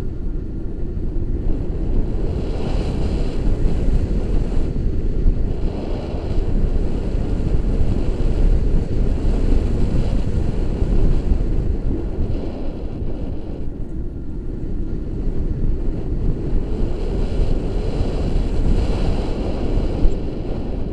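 Strong wind buffets a microphone outdoors.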